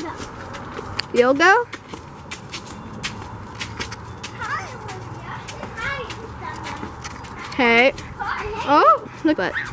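Footsteps patter on pavement as a child runs.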